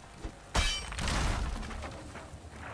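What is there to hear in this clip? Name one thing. A tree creaks and crashes down.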